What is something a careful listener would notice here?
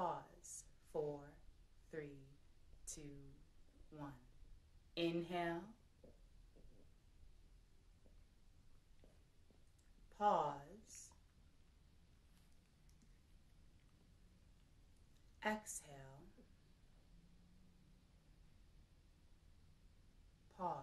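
A young woman speaks slowly and calmly close to a microphone, with long pauses.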